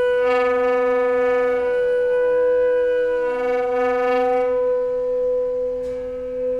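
A double bass is bowed in long sustained notes.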